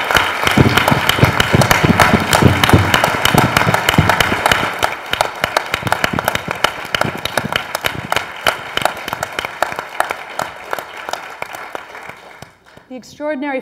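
An audience applauds loudly in a room, then the clapping fades away.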